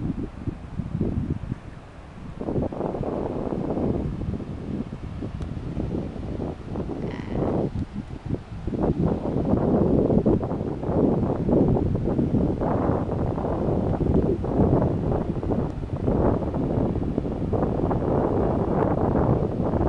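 Strong wind rumbles loudly outdoors.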